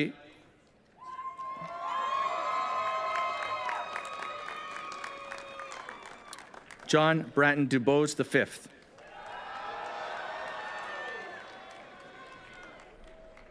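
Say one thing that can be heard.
A crowd cheers and whistles.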